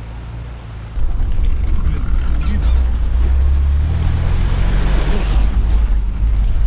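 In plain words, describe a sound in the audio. A vehicle engine rumbles loudly close by.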